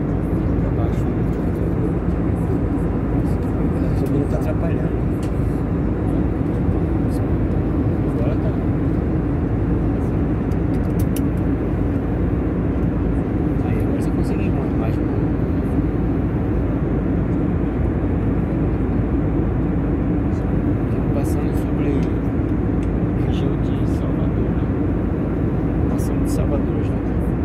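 A jet engine roars steadily and loudly from close by, heard from inside a cabin.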